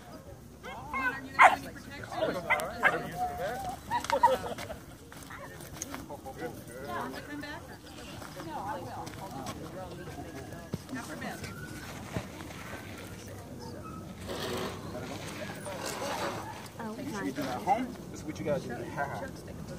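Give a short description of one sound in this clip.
A man gives commands to a dog in a firm voice outdoors.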